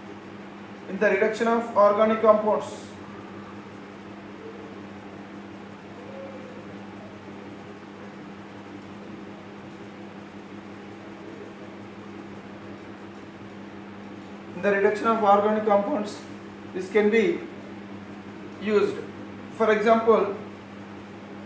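A man speaks calmly nearby, in short bursts.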